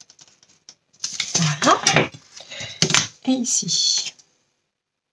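A sheet of cardboard slides and rustles across a table.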